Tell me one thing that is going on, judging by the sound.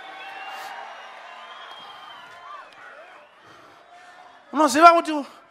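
A crowd sings and cheers in a large hall.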